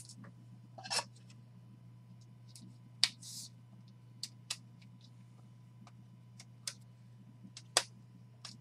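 Plastic card sleeves crinkle and click as hands handle them.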